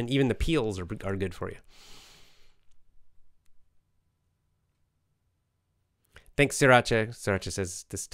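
A middle-aged man speaks calmly and closely into a microphone, pausing between phrases.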